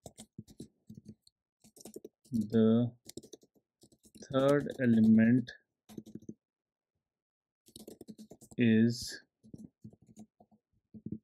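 Keys clatter on a keyboard in quick, uneven bursts.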